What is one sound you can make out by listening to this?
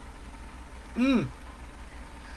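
A man lets out a pleased vocal sigh.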